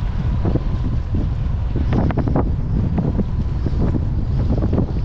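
Wind blows hard over the open water.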